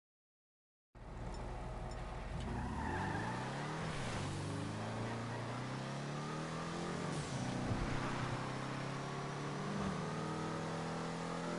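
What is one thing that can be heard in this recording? A car engine hums and revs as the car drives off.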